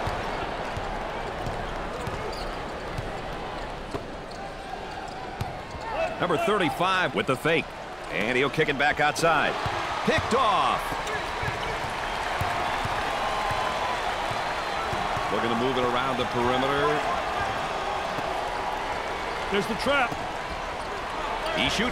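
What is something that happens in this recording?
A crowd murmurs and cheers steadily in a large echoing arena.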